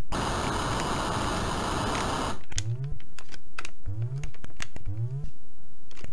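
Retro video game sound effects play harsh electronic noise and rising bleeps.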